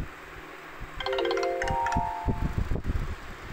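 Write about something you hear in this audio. A bright chime jingle plays.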